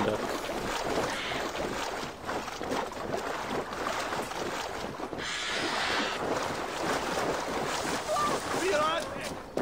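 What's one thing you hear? Water splashes and swishes as someone wades through a river.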